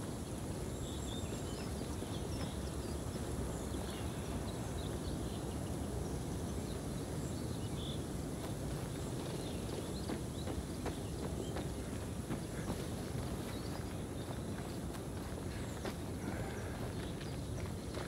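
Footsteps crunch through dry undergrowth.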